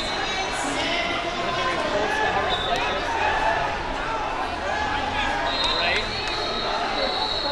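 A crowd chatters and calls out throughout a large echoing hall.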